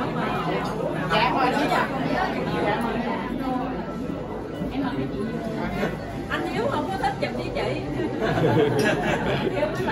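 A young woman speaks calmly into a microphone, close by.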